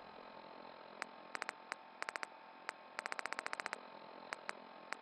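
A device menu clicks rapidly as items are scrolled through.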